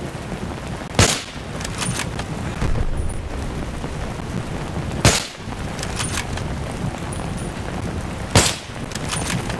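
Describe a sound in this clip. A rifle fires loud single shots that echo.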